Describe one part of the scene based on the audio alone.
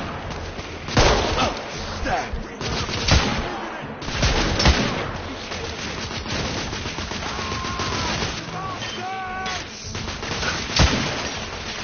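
Rifle shots ring out one at a time, loud and sharp.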